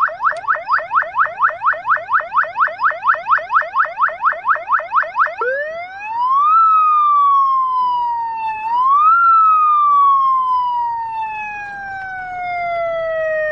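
A siren on a nearby vehicle yelps rapidly, then wails slowly up and down.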